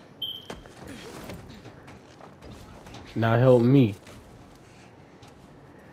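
Boots scrape and thud on a metal truck as someone climbs onto it.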